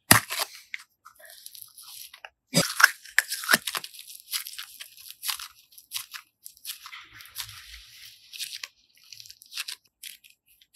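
Soft sticky slime squishes and squelches between fingers.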